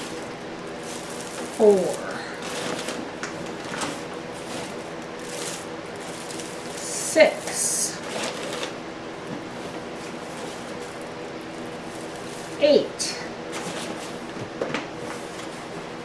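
A plastic bag crinkles and rustles as it is handled.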